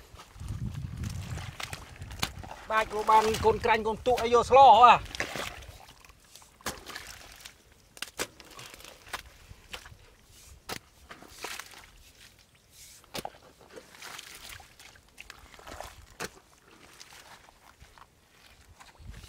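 A hoe chops into wet mud.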